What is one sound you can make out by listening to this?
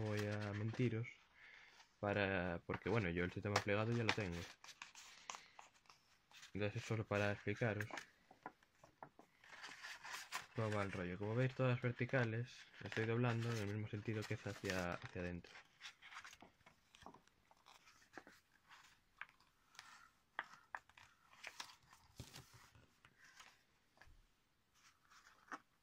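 Stiff paper rustles and crinkles as it is folded.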